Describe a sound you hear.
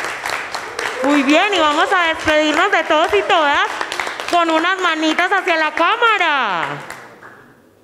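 A young woman vocalizes loudly through a microphone.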